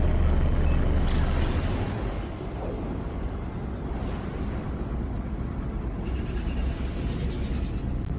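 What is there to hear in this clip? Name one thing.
A rushing whoosh sweeps past as the spaceship jumps to high speed.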